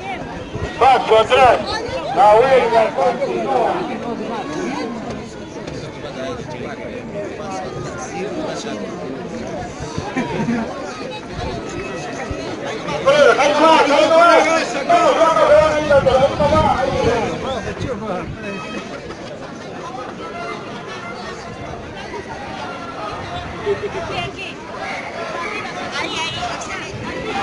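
A crowd of people talks and murmurs outdoors close by.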